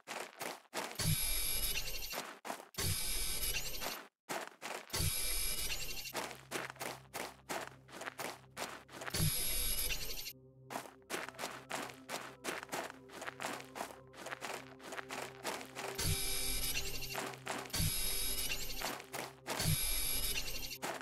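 A handheld tool whooshes and hums in short bursts as it sucks up rocks.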